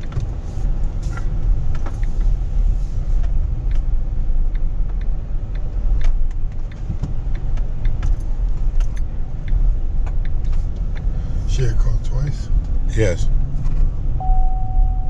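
A car engine hums steadily from inside the cabin as the car drives.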